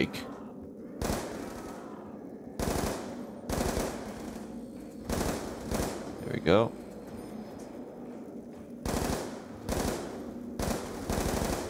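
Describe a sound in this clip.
Bursts of gunfire ring out from a game.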